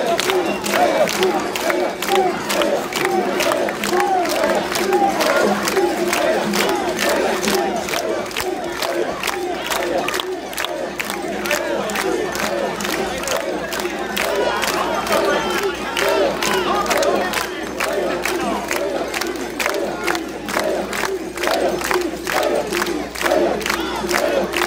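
A large crowd of men chants loudly in rhythm close by.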